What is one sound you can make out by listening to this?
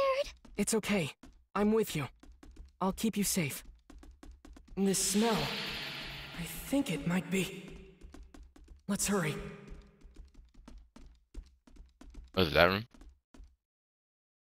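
Quick footsteps thud on a wooden floor.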